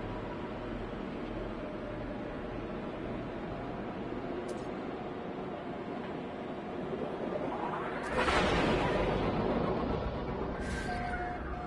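A spaceship engine hums steadily.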